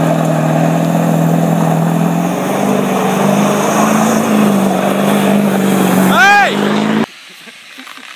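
A pickup truck engine roars as it spins on a snowy lot.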